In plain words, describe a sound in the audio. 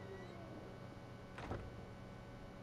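A heavy wooden door thuds shut.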